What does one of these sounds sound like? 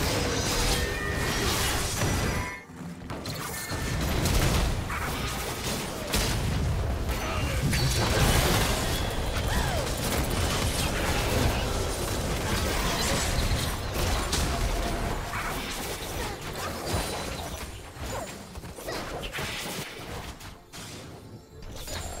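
Magic spells crackle and burst in a fast fantasy battle.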